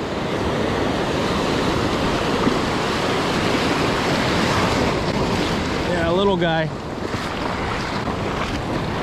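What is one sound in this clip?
Waves break and wash over the shore with a steady rushing roar.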